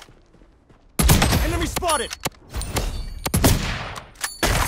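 A sniper rifle fires a loud, booming shot.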